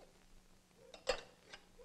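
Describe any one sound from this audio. A metal cup clanks onto a metal container.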